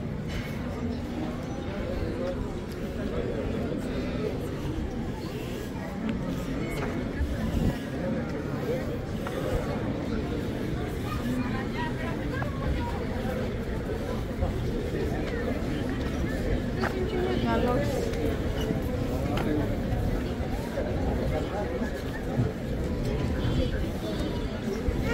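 Voices of a crowd murmur in the distance outdoors.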